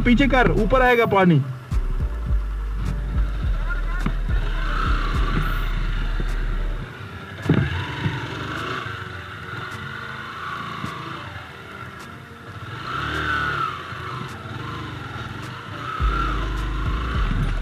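A motorcycle engine idles with a low, steady rumble nearby.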